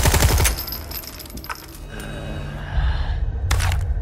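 A gun clicks empty.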